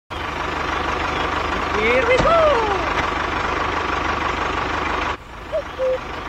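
A small toy tractor's motor whirs steadily.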